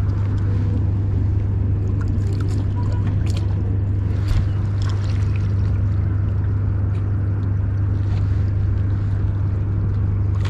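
A fishing reel whirs and clicks as its handle is turned.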